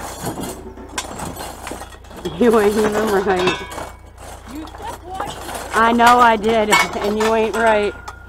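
Metal hooks clink and rattle as they are handled.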